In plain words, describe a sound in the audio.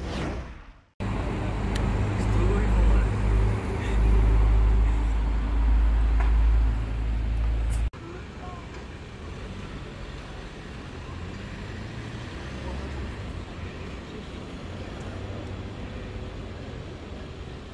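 Traffic hums steadily on a road below.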